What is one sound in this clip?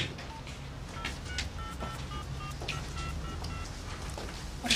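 A mobile phone beeps as its keys are pressed.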